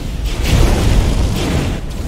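Flames roar in a fiery blast.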